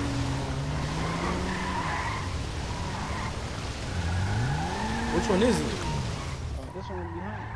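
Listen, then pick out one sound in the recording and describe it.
Tyres screech while skidding.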